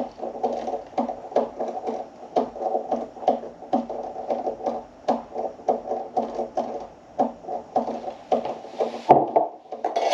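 Milk pours and splashes into a cup.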